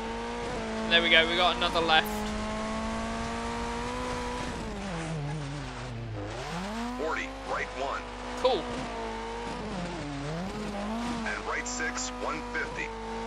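Gravel sprays and rattles under the car's tyres.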